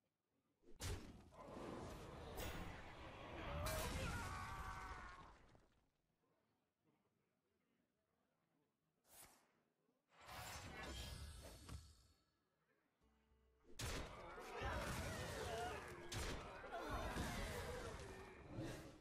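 Game sound effects clash and whoosh as cards attack one another.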